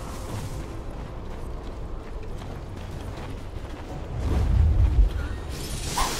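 Game characters clash in a fight with hits and magic effects.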